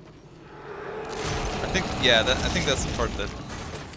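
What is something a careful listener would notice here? A heavy chest bursts open with a loud crash.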